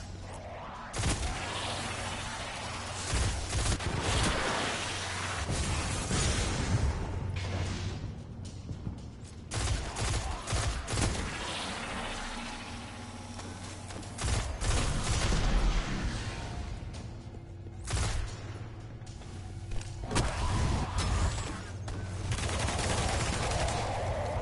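Guns fire in rapid bursts of shots.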